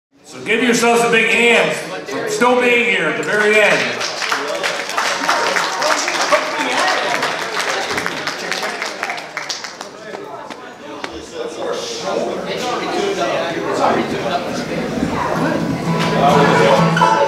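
A bluegrass band plays banjo, guitar, mandolin and upright bass.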